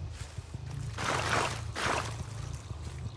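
Leaves and branches rustle loudly as something pushes through dense bushes.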